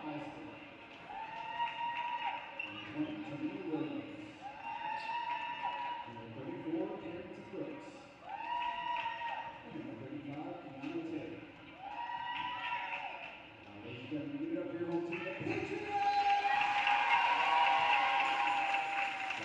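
A group of girls sings together slowly in a large echoing hall.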